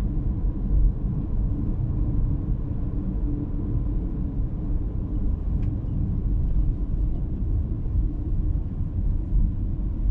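Tyres roll on asphalt with a low, steady rumble.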